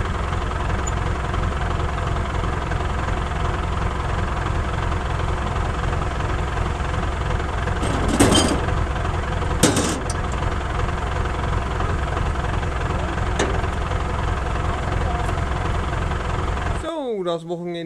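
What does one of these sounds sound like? A tractor engine rumbles steadily close by.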